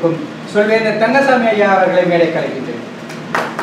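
A man speaks to a small audience in a room.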